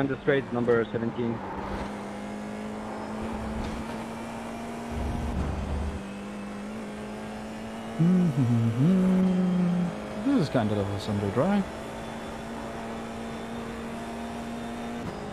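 A racing car engine drones steadily.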